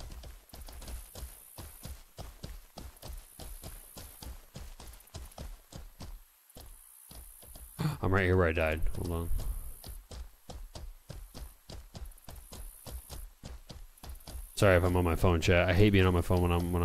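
A horse's hooves thud rhythmically as it gallops over grass.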